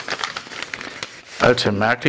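A paper envelope rustles as it is handled.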